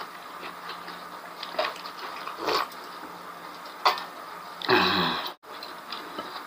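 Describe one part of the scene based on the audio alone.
A man gulps a drink from a metal mug.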